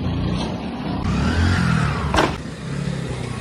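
A motorcycle engine roars past nearby.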